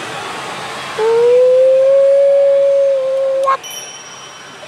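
A slot machine plays a long tone at the end of a bonus round.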